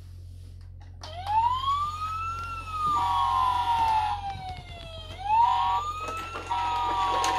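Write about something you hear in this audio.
A toy fire truck siren wails electronically, rising and falling.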